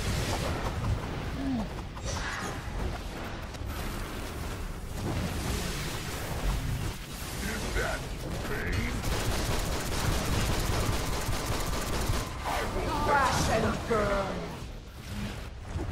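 Video game energy blasts zap and crackle.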